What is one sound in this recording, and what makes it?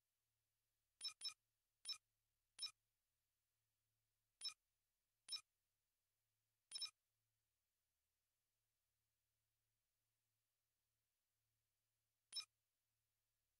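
Short, sharp electronic clicks sound now and then as menu options change.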